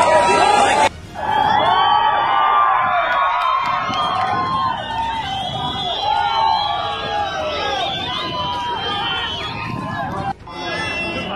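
A large crowd outdoors shouts and chants loudly.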